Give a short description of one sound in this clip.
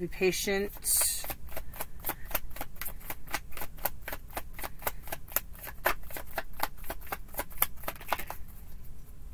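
Playing cards are shuffled with rapid soft clicks.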